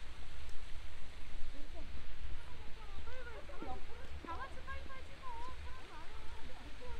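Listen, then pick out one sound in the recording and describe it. Young women chat quietly nearby.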